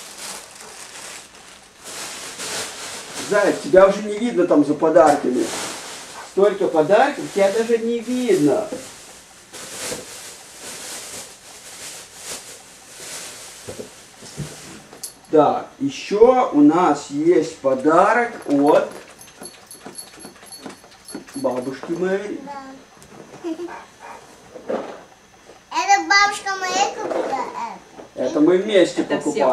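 Plastic wrapping crinkles as a toddler handles a toy package.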